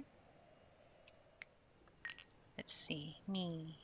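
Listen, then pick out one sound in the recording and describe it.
A soft interface click sounds as a menu window opens.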